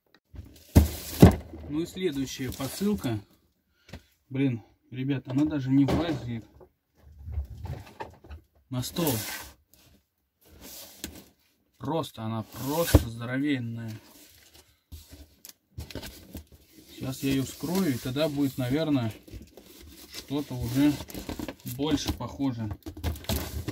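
A large cardboard box thumps and scrapes on a wooden table.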